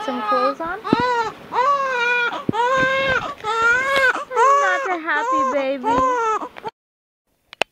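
A baby cries loudly and wails close by.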